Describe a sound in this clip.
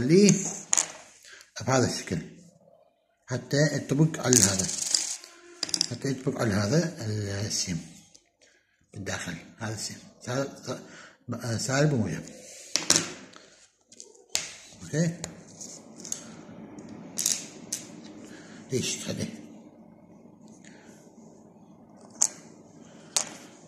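Small plastic parts click and tap against a hard surface.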